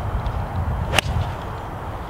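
A golf club strikes a ball with a sharp click.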